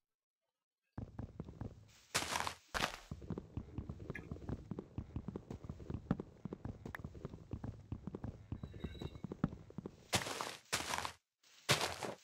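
Stone blocks crunch repeatedly as they are dug.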